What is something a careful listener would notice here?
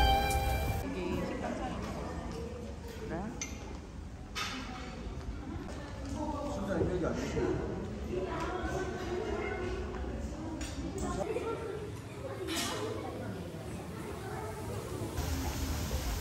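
Diners chatter and murmur in a large room.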